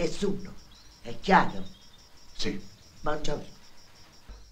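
An elderly woman speaks with animation close by.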